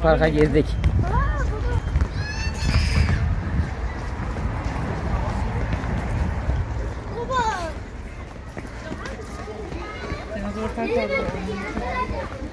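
A young child talks at a distance.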